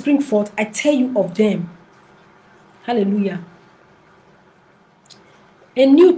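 A woman speaks calmly in short phrases, close to a microphone.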